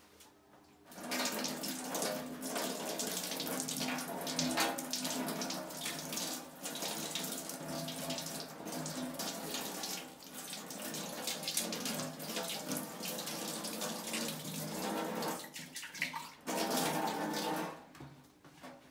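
A stone grinder churns wet batter with a loud steady whirring rumble.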